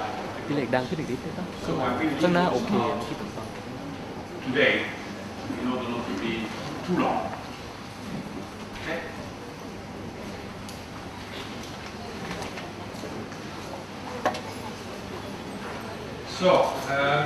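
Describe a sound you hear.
An elderly man speaks calmly to an audience in a large echoing hall.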